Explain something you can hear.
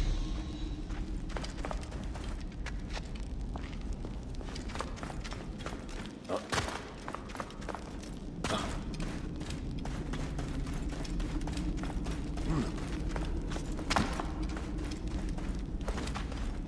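Footsteps walk on stone.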